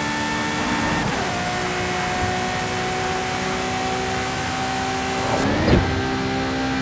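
A gear shift clunks as the engine drops in pitch.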